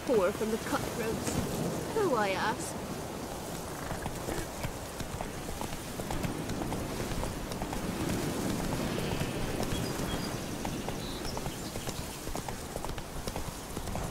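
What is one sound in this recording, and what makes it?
A horse gallops with steady hoofbeats on dirt and grass.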